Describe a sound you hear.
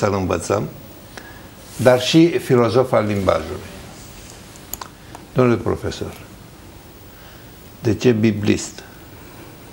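An elderly man reads aloud slowly through a microphone, with pauses.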